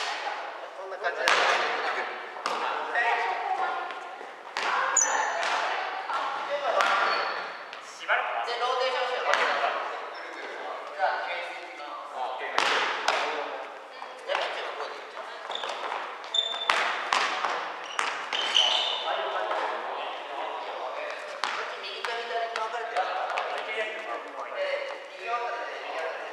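Young men talk and call out in an echoing hall.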